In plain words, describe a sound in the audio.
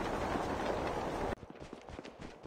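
Wind rushes past during a parachute descent.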